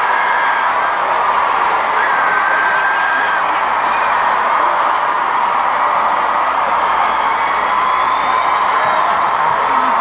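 A large crowd cheers and screams loudly outdoors.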